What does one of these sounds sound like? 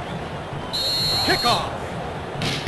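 A referee's whistle blows at kick-off.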